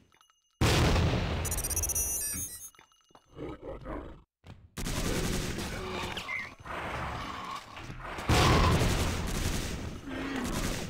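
Game gunfire and explosions boom loudly.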